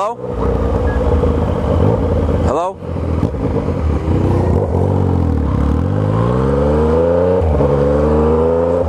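A motorcycle engine revs up and down, rising in pitch as it accelerates through the gears.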